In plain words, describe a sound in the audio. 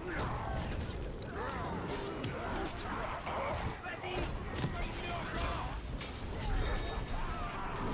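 Blows and impacts clash in a fight.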